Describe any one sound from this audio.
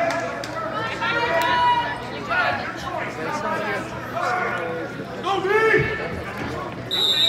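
Spectators shout and cheer loudly in a large echoing hall.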